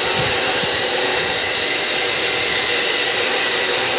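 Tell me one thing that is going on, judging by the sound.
A cut-off saw grinds through metal with a steady high whine.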